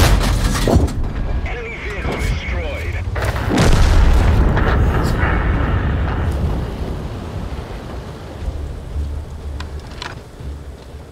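Tank guns fire with loud booms.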